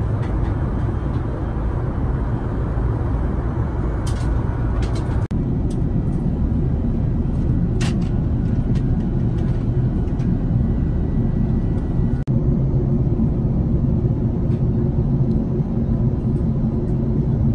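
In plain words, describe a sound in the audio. A jet airliner's engines roar steadily through the cabin.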